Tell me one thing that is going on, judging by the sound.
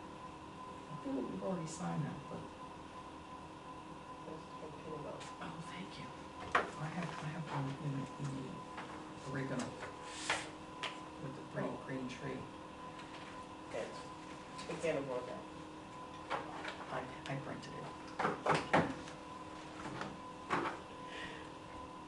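An elderly man speaks steadily at a distance in a room with some echo.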